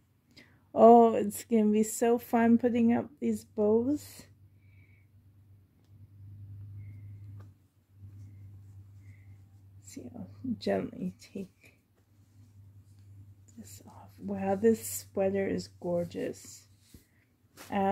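Soft fabric rustles as clothing is handled.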